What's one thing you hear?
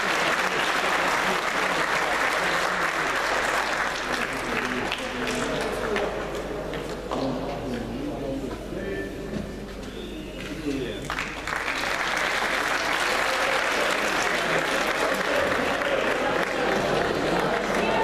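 A large crowd chatters in an echoing hall.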